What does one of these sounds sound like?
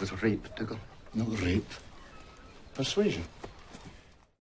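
A man speaks in a low, gruff voice, close by.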